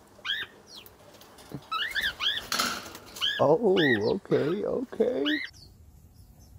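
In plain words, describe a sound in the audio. Cockatiels chirp.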